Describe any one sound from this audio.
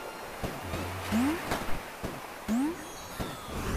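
Rising bleeps sound as a small game character jumps.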